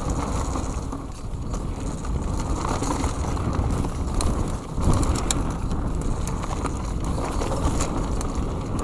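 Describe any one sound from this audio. Bicycle tyres roll fast over a bumpy dirt trail.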